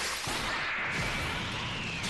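Electric crackling surges around a fighter powering up.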